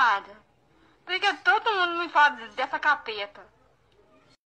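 A young woman speaks close by.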